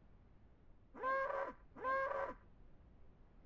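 A cow moos twice, briefly.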